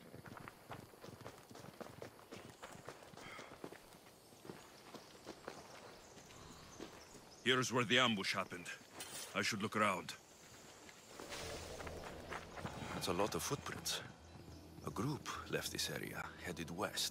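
Footsteps crunch on dry dirt and grass.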